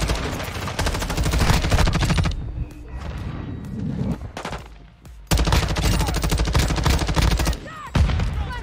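Rapid automatic gunfire rattles loudly in quick bursts.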